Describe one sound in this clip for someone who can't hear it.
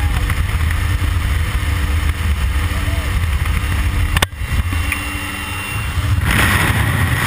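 An aircraft engine drones loudly.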